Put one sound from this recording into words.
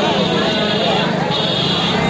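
An engine idles nearby.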